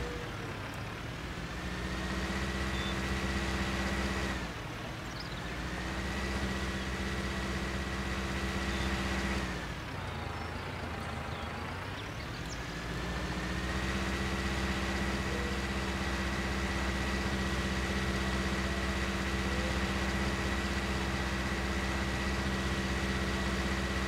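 A tractor engine hums steadily, rising and falling as it revs and idles.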